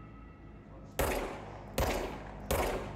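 A pistol fires loud shots that echo down a hallway.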